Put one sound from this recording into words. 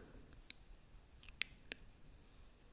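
Fingernails tap close to a microphone.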